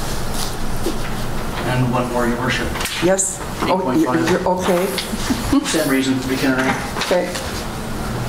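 An elderly woman speaks calmly over a microphone.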